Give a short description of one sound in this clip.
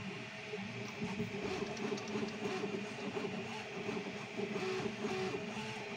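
A 3D printer's motors whir and chirp in shifting pitched tones as the print head moves.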